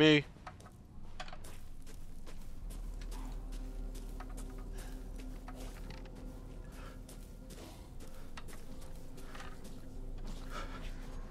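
Footsteps crunch and rustle through dry brush.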